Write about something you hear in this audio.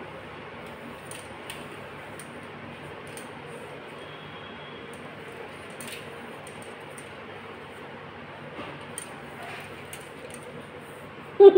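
A wire cage scrapes and rattles against a hard floor.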